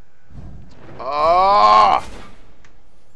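A fiery magical blast whooshes and roars.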